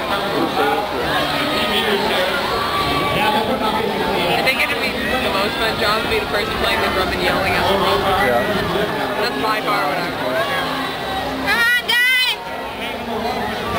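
A crew of men and women shout together as they paddle.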